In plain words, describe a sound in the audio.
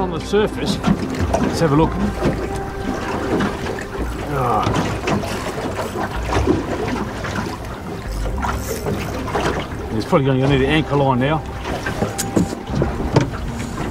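A man talks with animation close by, outdoors in wind.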